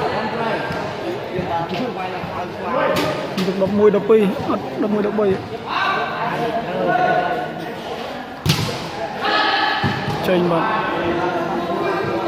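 Young men shout and call out with animation in a large echoing hall.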